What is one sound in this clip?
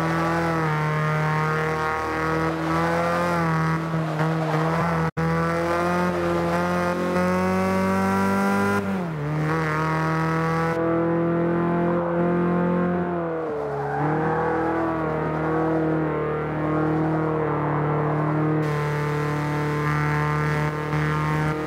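A car engine roars steadily, rising in pitch and dropping briefly as the gears shift.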